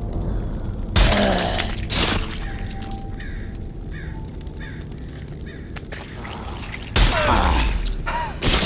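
An axe chops hard into flesh with a wet thud.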